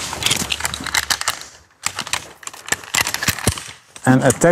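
Metal clips click and rattle.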